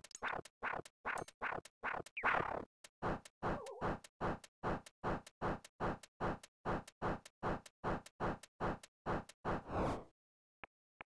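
A video game bow fires arrows in a fast, even rhythm.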